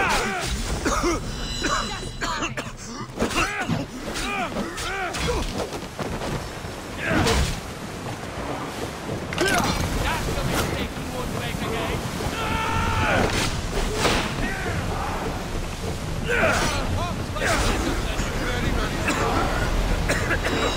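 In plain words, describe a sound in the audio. Swords clash and strike repeatedly in a close fight.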